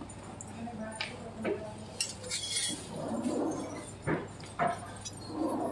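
Metal bangles clink against each other and against glass.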